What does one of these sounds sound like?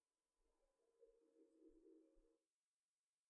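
A marker squeaks on a whiteboard.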